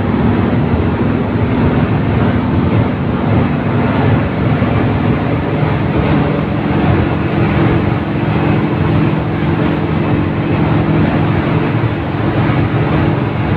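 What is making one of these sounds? A bus engine drones and rumbles steadily from inside the bus.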